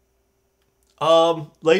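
A man speaks briefly and close to a microphone.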